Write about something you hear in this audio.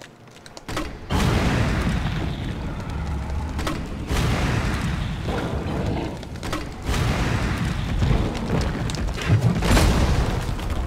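A grenade launcher fires.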